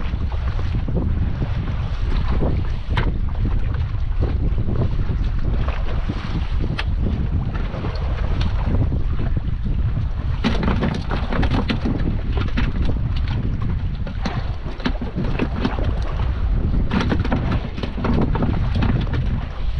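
Wind blows steadily outdoors on open water.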